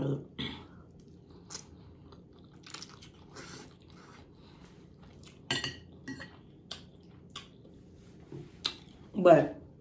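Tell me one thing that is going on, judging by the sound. A woman chews and slurps noodles close to a microphone.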